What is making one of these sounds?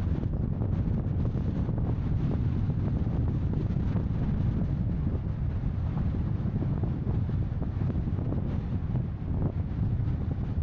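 Tyres crunch and rumble over a sandy, bumpy track.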